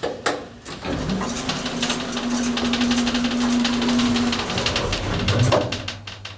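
An elevator motor hums steadily as the car moves.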